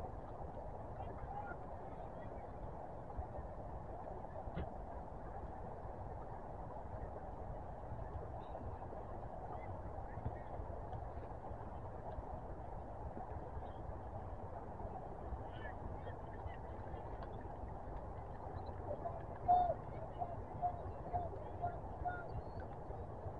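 Wind rumbles across an open field outdoors.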